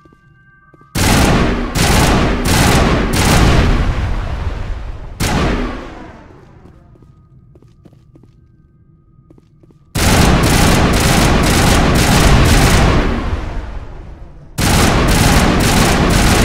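Loud bursts of gunfire blast and crackle.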